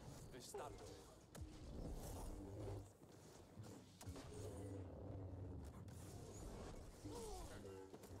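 Blaster shots zap in quick bursts.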